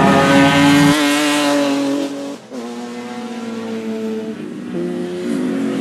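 Car engines change gear with sudden drops in pitch.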